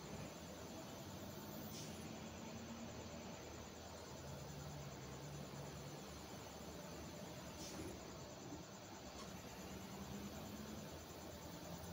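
A truck engine hums steadily as it climbs.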